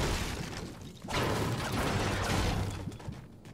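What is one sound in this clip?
A pickaxe smashes into a metal shelf with a crash.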